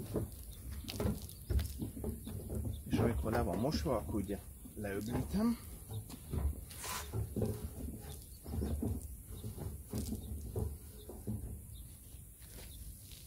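A wet wash mitt scrubs and squelches over a soapy car panel.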